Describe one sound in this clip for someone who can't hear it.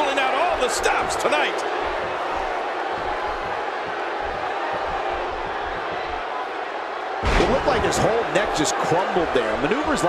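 Heavy thuds land on a wrestling ring mat.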